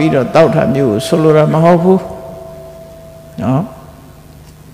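An elderly man chants in a slow, drawn-out voice.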